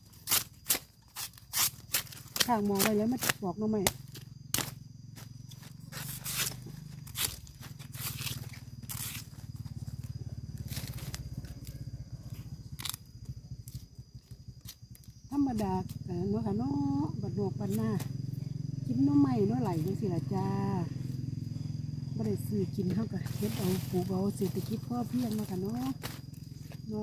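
A knife chops and strikes sharply into bamboo.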